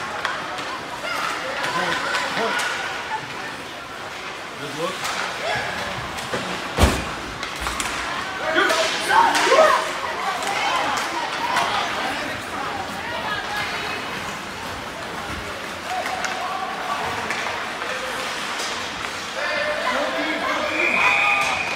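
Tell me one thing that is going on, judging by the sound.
Ice hockey skates scrape across the ice.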